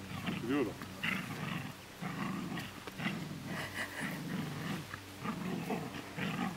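A dog growls and snarls while tugging.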